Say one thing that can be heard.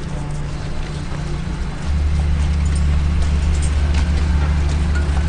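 Large aircraft engines drone steadily nearby.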